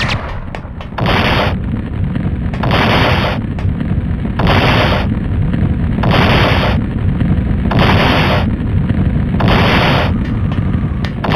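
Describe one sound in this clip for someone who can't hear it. Guns fire in quick repeated bursts.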